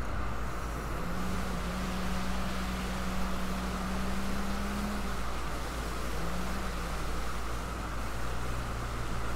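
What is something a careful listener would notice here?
A motorboat engine hums as a boat speeds across the water.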